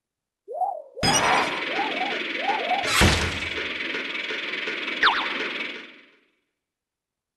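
Large gears grind and turn with a heavy mechanical rumble.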